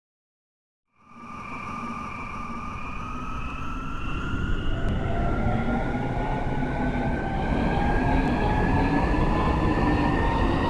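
Train wheels rumble on the rails and grow louder.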